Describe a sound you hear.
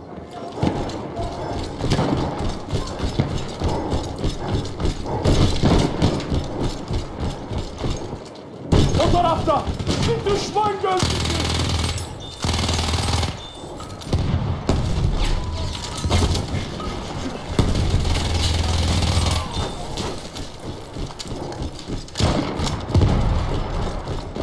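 A twin-barrelled gun fires rapid bursts.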